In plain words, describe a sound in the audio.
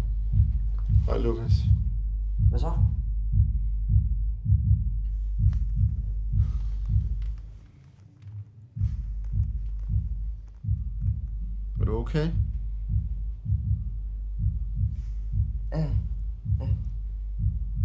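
A man speaks quietly and slowly, close by.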